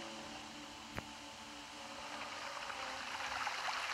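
A waterfall rushes nearby.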